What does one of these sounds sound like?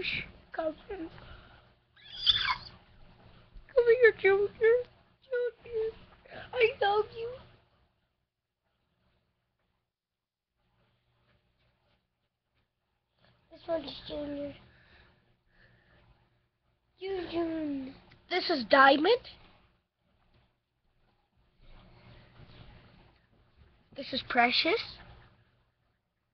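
A young child talks and squeals close by, in bursts.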